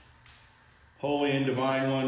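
A man sings a sustained note in an echoing hall.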